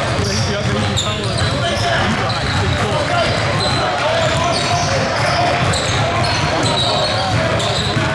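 Young men talk and call out across the court.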